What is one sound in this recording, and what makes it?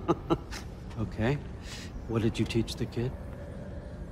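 An older man chuckles.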